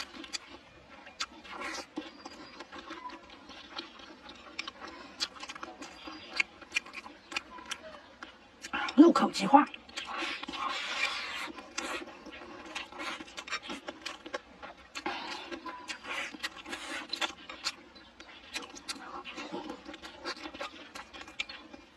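A young woman chews food loudly with wet, smacking sounds.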